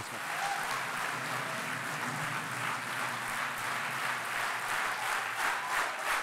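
A large crowd cheers and applauds in a big hall.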